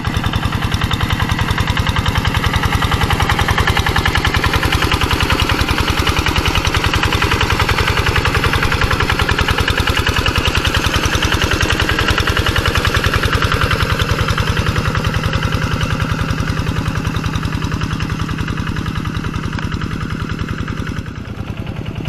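A single-cylinder diesel engine chugs loudly and steadily close by.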